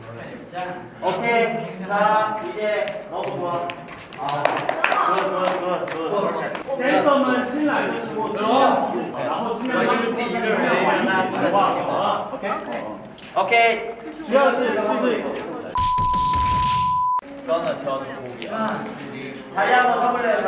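Young men talk and laugh with animation close by.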